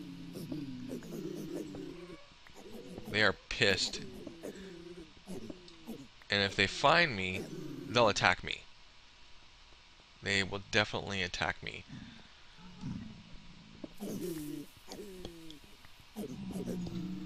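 A man talks calmly and with animation close to a microphone.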